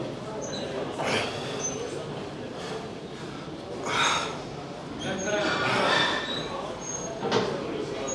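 A man exhales sharply with effort, close by.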